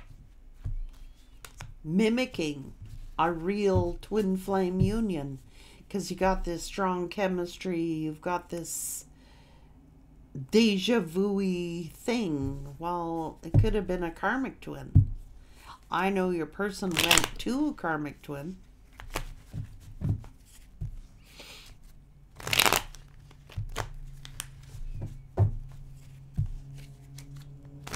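Cards shuffle and tap on a table.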